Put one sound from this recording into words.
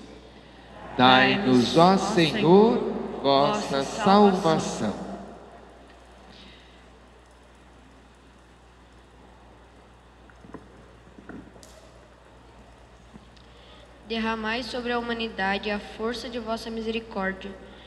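A congregation sings together in a large echoing church.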